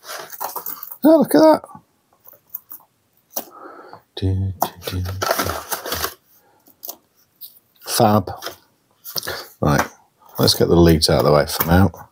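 Cables rustle as they are lifted out.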